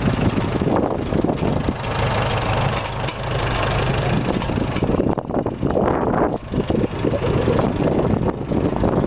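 An old tractor engine idles with a steady, loud chugging close by.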